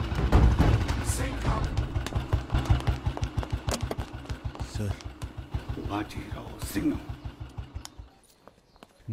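A motorcycle engine rumbles and putters close by.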